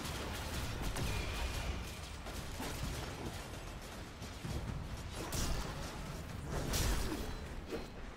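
Gunfire from a weapon bangs in quick bursts.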